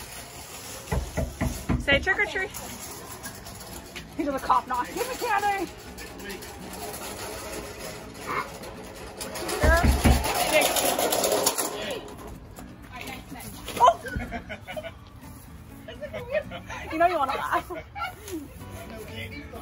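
Young children talk and call out excitedly nearby.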